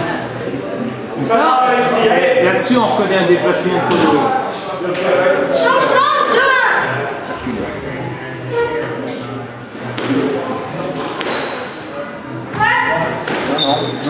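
A squash ball smacks against the walls and rackets in an echoing court.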